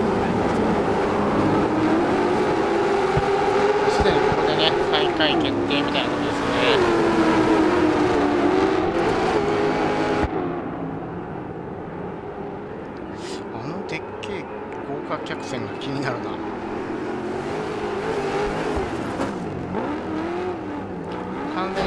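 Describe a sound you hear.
Tyres skid and spray dirt on a loose track.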